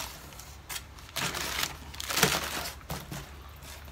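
Cardboard flaps rustle and thump as a box is pulled open.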